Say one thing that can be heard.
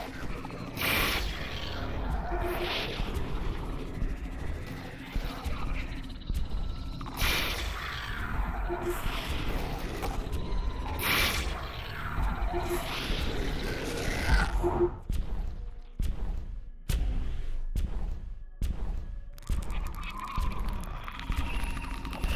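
A shotgun fires again and again.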